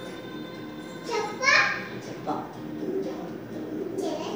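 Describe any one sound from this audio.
A boy laughs close by.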